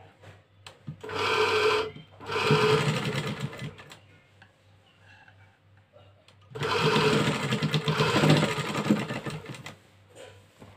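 A sewing machine whirs and rattles in short bursts.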